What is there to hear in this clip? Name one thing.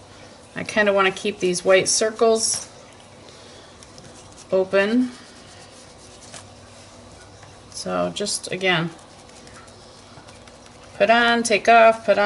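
A cloth rubs softly over paper.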